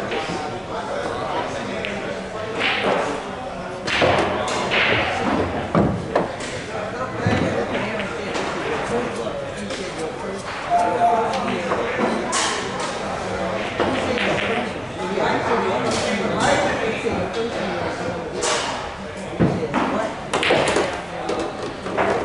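Pool balls clack against each other and roll on the table.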